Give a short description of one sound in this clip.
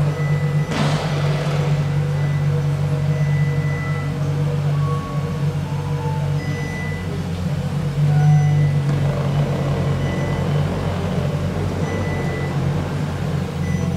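A sports car's engine idles with a deep, steady rumble.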